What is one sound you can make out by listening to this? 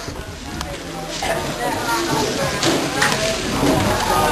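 A crowd of men and women chatter loudly nearby.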